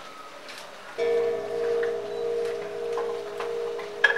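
A man strikes a resonant drum with sticks, producing ringing, pulsing tones.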